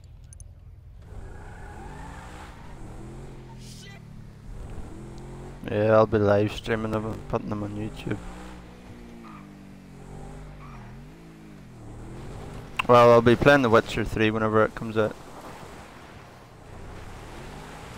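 A car engine hums and revs as a car drives.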